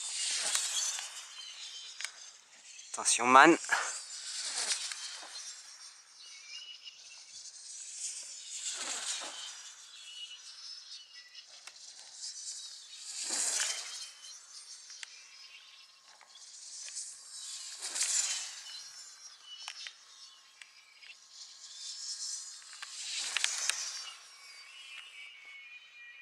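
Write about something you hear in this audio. A small glider whooshes through the air overhead in repeated swooping passes.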